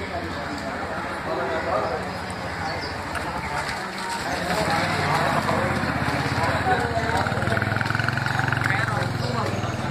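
A motorcycle engine rumbles as it rides past close by.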